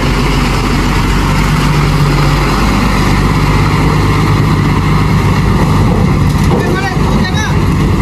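A diesel truck engine rumbles nearby, then pulls away and fades.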